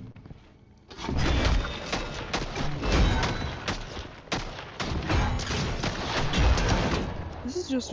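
A shield strikes and clangs repeatedly in a video game.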